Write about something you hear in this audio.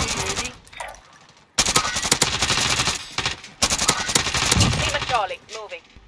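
Rifle shots crack loudly in quick bursts.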